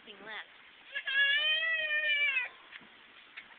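A young child lets out a long high squeal.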